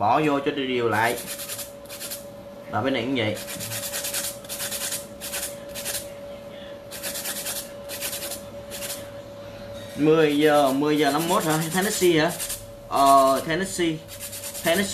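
A nail file rasps against a fingernail in quick, repeated strokes.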